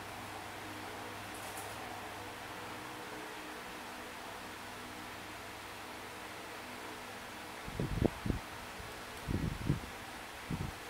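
Soft electronic game music plays quietly.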